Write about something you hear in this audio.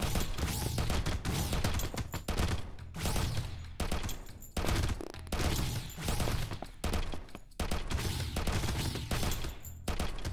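Rapid gunfire blasts from a video game.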